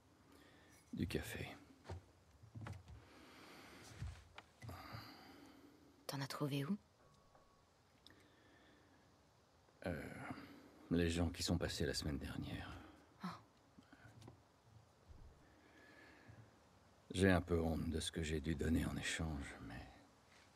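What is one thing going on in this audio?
A middle-aged man answers in a low, hesitant voice.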